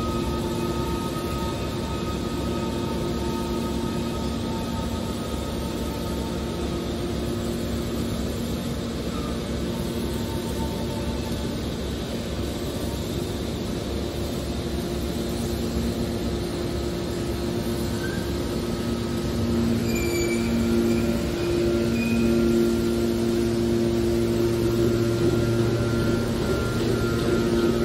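A hydraulic baler hums steadily, its pump whining.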